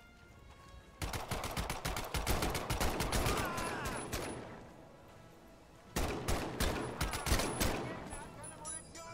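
A machine gun fires rapid bursts of loud shots.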